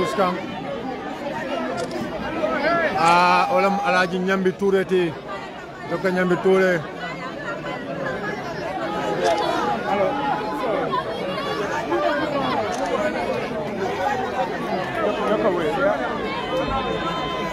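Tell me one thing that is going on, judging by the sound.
A crowd of men talks and shouts all at once, close by.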